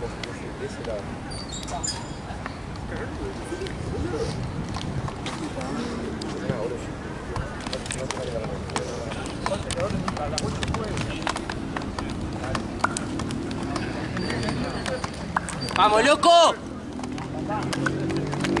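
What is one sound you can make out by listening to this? Young men talk and call out to each other outdoors at a distance.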